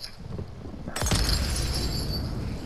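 Flames burst up with a loud whoosh.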